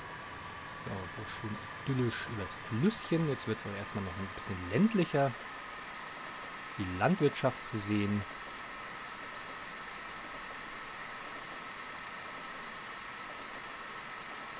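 An electric train hums steadily as it rolls along the rails.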